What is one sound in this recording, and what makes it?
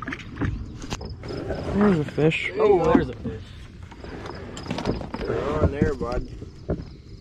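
An older man talks nearby.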